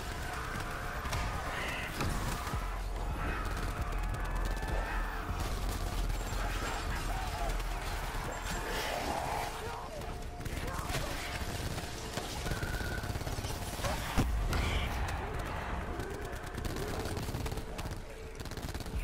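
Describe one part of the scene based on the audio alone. An electric weapon crackles and buzzes in bursts.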